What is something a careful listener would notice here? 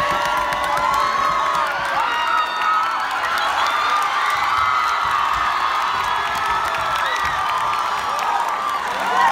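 Young people clap their hands.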